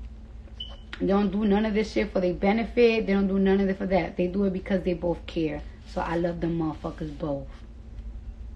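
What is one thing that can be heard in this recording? A young woman talks casually and close to a phone microphone.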